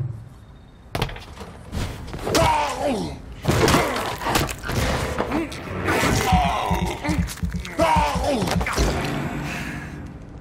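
Bodies scuffle and thud in a struggle.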